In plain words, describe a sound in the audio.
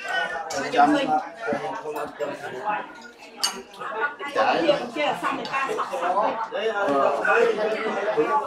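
Dishes clink as a man handles food on a table.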